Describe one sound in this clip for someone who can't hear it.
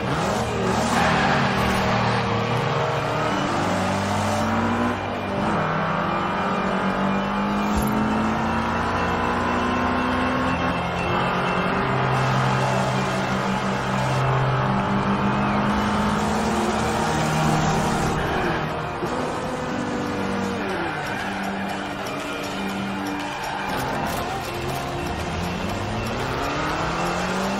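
A racing car engine revs hard and rises in pitch as the gears change.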